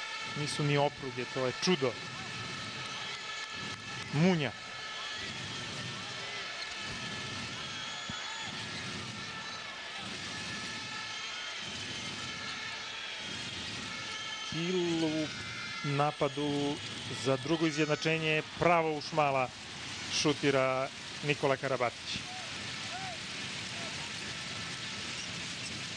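A large crowd cheers and chants in an echoing hall.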